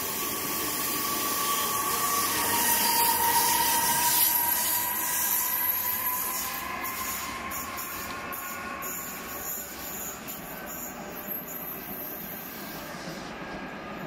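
A passenger train rumbles past close by and fades into the distance.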